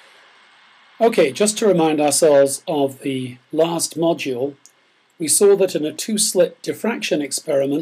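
An older man speaks calmly and close to a microphone, as if lecturing.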